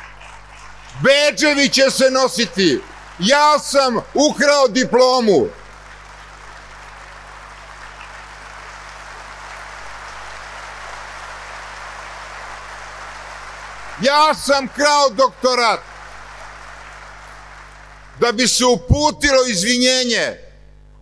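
An elderly man speaks with animation into a microphone in a large hall.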